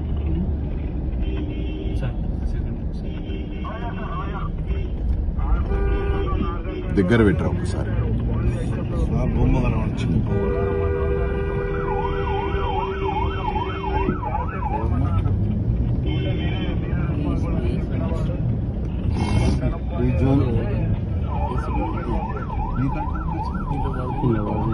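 Car and motorbike engines rumble steadily in busy street traffic.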